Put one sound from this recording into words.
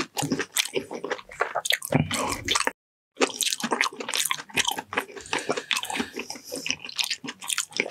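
Soft food squishes and squelches between fingers.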